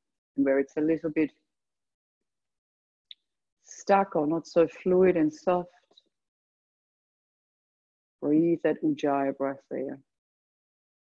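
A woman speaks calmly and softly close to a microphone, with pauses.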